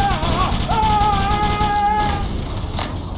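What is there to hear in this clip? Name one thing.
A plasma weapon fires with sharp electric zaps.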